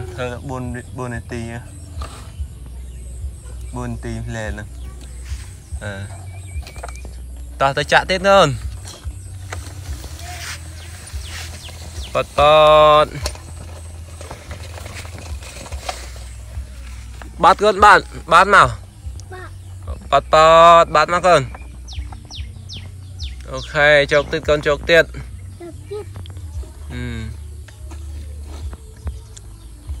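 A plastic toy truck scrapes and rattles across dirt.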